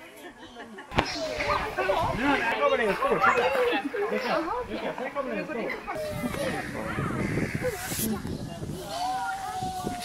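Young children chatter and call out outdoors.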